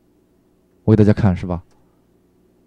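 A man speaks briefly, as if addressing a room.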